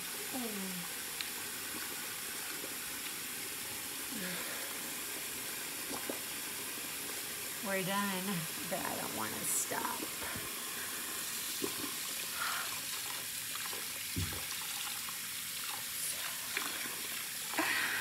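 A woman speaks and sings with animation close by.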